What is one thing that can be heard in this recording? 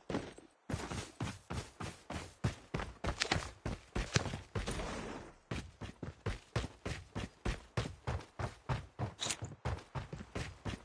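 Quick footsteps thud steadily on the ground.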